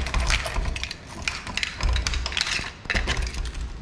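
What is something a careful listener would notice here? A metal door handle rattles and clicks.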